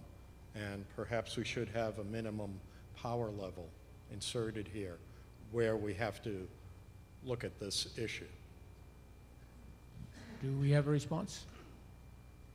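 A middle-aged man speaks steadily into a microphone.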